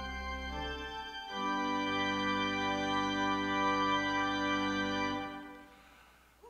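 A pipe organ holds a sustained chord that then stops.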